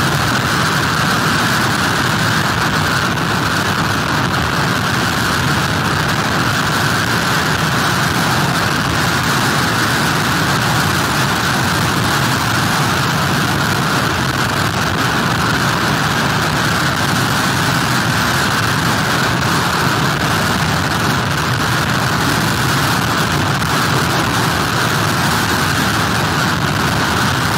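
Heavy surf crashes and churns onto the shore.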